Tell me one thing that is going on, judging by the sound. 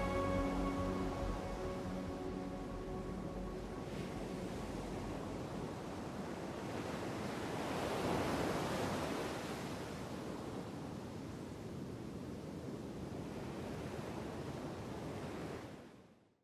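Ocean waves surge and wash over rocks.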